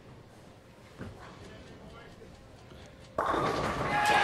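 A bowling ball rolls down a wooden lane.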